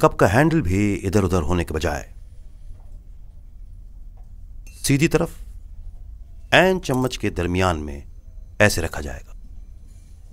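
A middle-aged man speaks firmly and sternly nearby.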